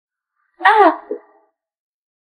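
A young woman exclaims in surprise close by.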